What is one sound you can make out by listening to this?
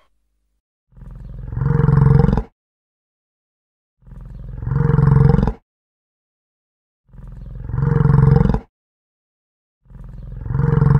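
A yak grunts loudly in slow, repeated bursts.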